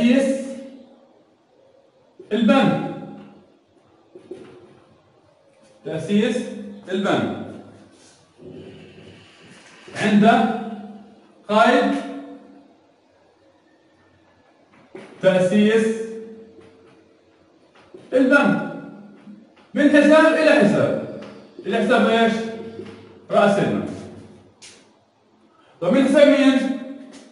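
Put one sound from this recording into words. A man speaks calmly and clearly in short phrases, close by.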